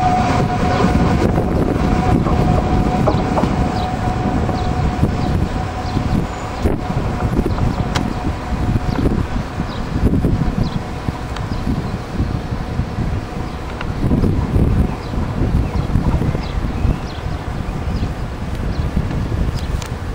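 A train rumbles in the distance as it slowly approaches.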